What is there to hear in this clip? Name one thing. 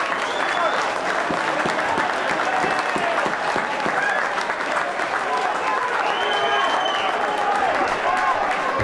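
A crowd murmurs and calls out across a large outdoor ground.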